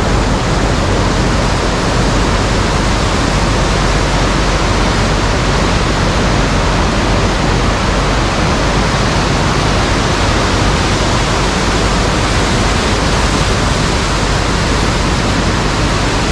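A swollen river rushes and roars loudly close by.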